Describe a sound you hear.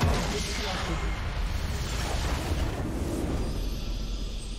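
A video game battle erupts with loud magical blasts and explosions.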